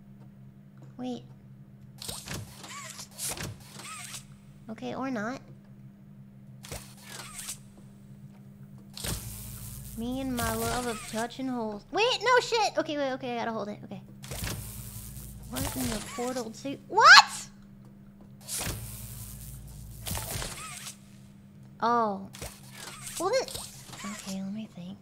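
A young woman speaks with animation into a microphone, close up.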